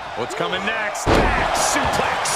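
A body slams heavily onto a wrestling ring mat.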